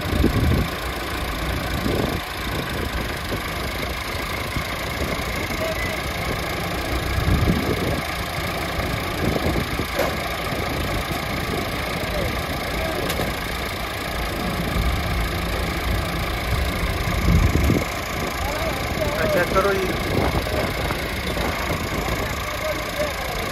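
Tractor engines rumble steadily close by.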